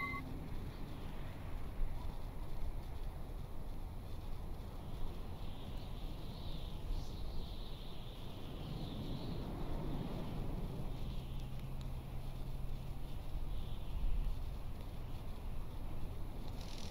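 Rain patters steadily on a wet street.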